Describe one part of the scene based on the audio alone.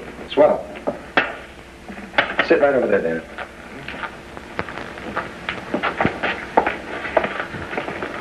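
A man speaks with animation nearby.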